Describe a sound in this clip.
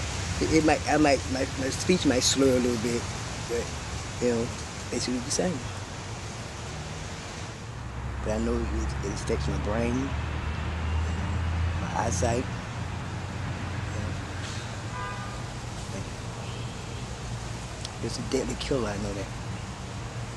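A middle-aged woman speaks calmly and close by, with pauses.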